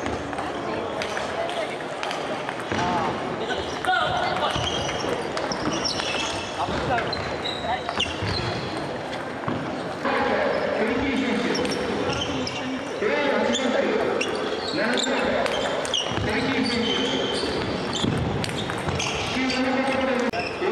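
A table tennis ball clicks off paddles and the table in an echoing hall.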